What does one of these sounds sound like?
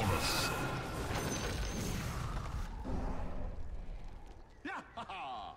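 Game sound effects of battle clash and zap.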